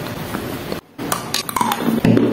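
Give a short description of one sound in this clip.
A young woman bites into a chalky block with a sharp crunch close to the microphone.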